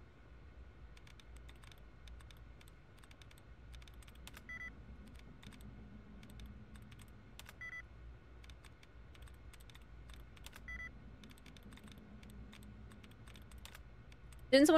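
Computer keys click rapidly and softly.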